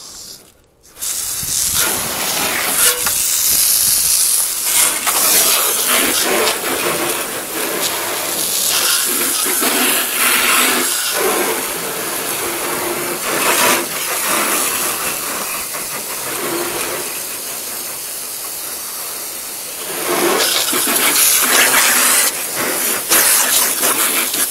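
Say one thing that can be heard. Water sprays hard from a hose and splashes onto a metal van roof.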